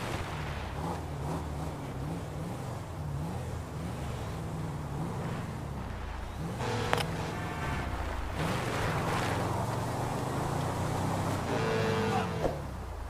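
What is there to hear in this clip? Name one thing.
Tyres roll over rough dirt and grass.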